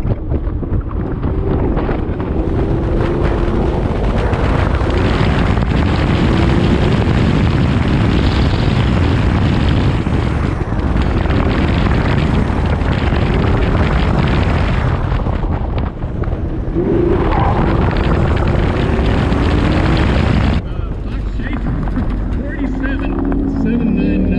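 Wind buffets loudly against a car.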